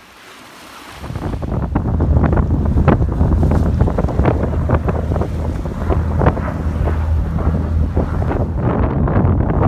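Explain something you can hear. A propeller plane roars loudly overhead with a deep, steady drone.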